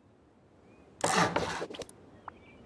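A wooden hammer strikes a wall with a dull knock.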